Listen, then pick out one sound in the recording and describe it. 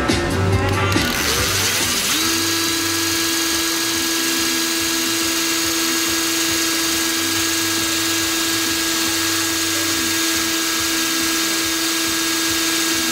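A cordless drill speeds up and then whirs steadily at a high pitch.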